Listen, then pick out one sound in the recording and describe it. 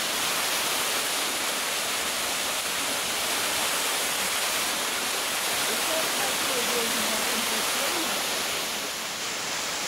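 Water laps gently against rocks.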